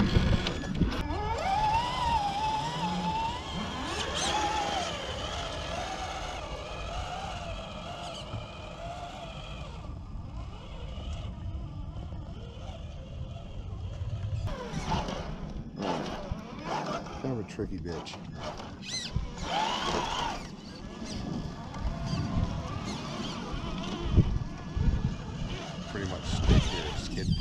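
A small electric motor whines, rising and falling in pitch.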